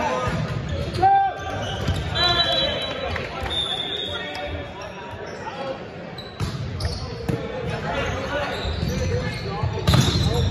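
Sneakers squeak on a hard court floor.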